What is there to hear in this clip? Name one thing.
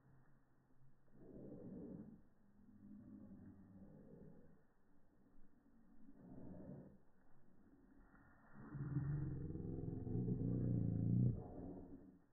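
A dog growls while tugging on a stick.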